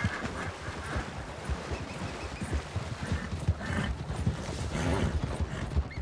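Hooves thud at a gallop on soft ground.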